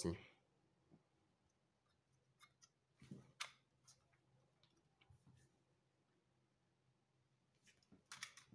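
A small plastic model carriage clicks and rattles softly as it is handled.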